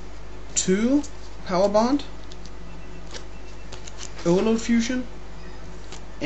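Playing cards rustle and slide as they are handled.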